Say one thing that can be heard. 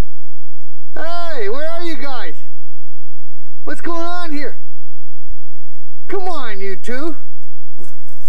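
A dog howls outdoors.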